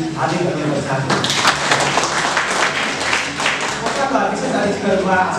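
A group of people applauds.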